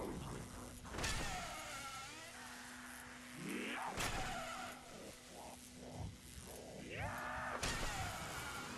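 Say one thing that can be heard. Loud electric zaps burst out now and then.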